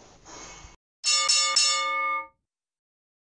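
A bell chimes brightly and rings out briefly.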